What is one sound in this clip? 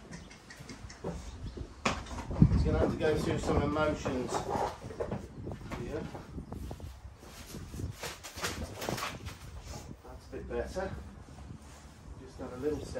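A horse shifts its hooves on straw.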